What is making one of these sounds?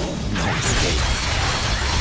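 Bursts of magic explode with a crackling blast.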